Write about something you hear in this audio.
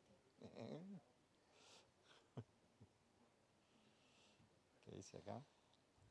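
A middle-aged man laughs softly.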